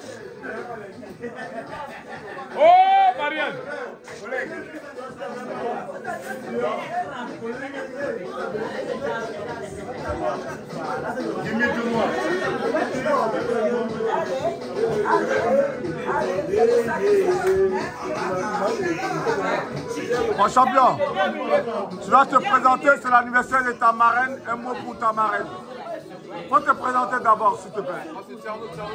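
A crowd of people chatter in a busy room.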